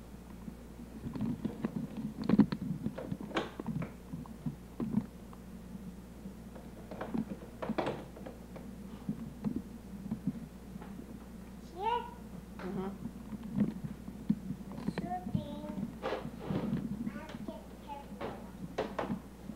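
A toddler babbles softly close by.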